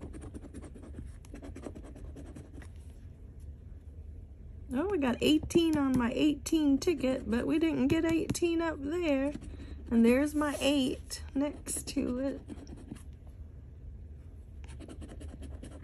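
A coin scratches across a scratch-off ticket.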